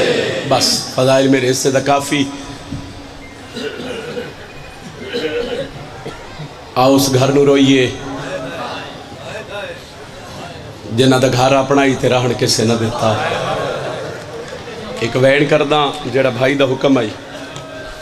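A group of men chant along in unison.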